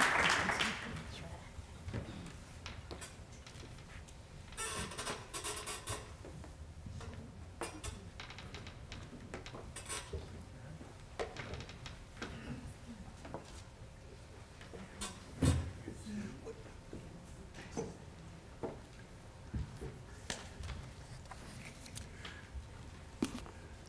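Men and women chat quietly nearby.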